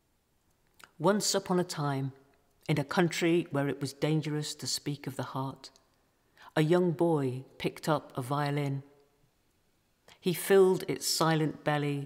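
An elderly woman speaks calmly through a television's loudspeaker.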